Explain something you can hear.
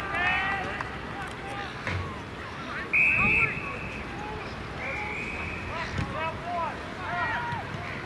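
Young women shout and call out across an open field outdoors.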